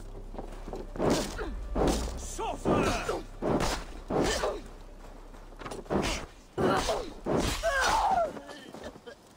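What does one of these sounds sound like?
A sword clashes against a shield in a fight.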